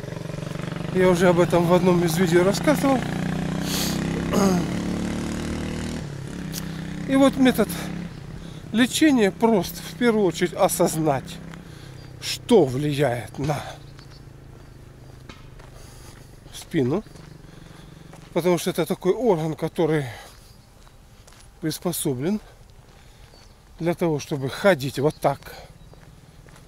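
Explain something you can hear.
An elderly man speaks close by in short bursts with pauses.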